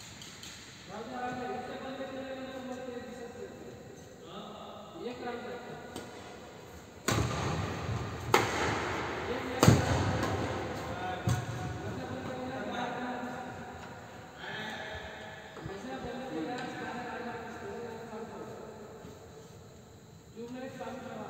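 Men talk across the court.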